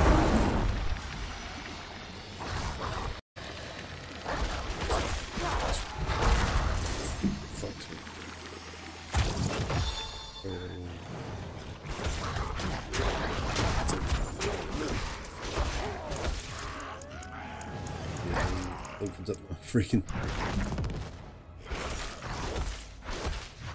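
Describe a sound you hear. Game combat sounds clash and thud with magic effects.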